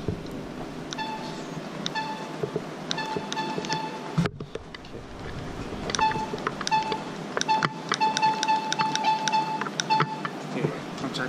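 A treadmill console beeps in short repeated tones.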